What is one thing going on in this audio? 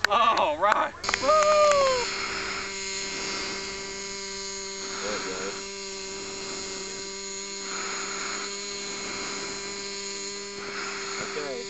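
A model aircraft's electric motor whines steadily close by.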